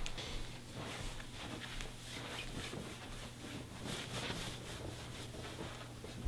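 Bare footsteps pad across a floor.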